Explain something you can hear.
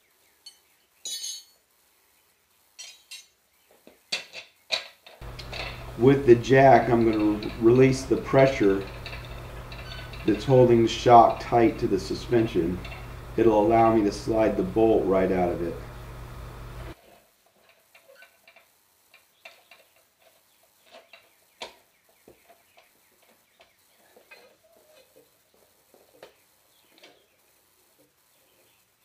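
Metal parts clink and clatter as they are handled.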